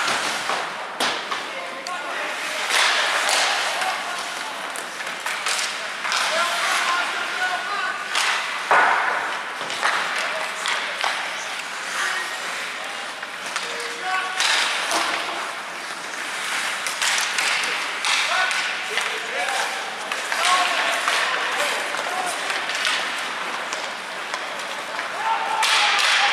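Hockey sticks click and clack against the puck.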